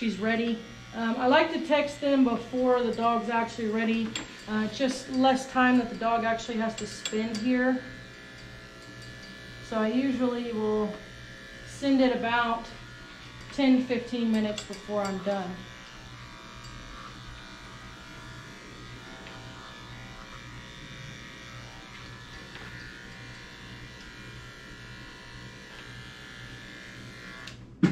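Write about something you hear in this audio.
Electric clippers buzz steadily.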